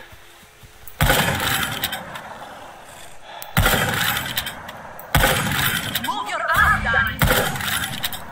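Rifle shots crack one at a time, each followed by a short echo.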